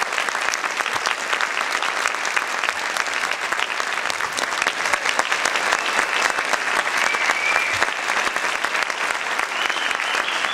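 A large audience applauds loudly in an echoing hall.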